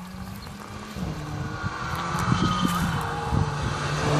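A car engine approaches and grows louder.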